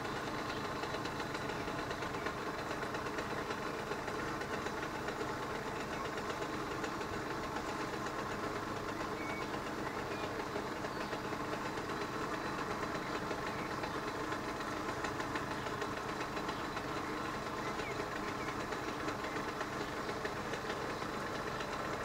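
A mechanical level crossing warning bell rings with rapid strokes.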